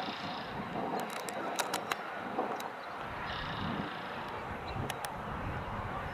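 Lacrosse sticks clack together.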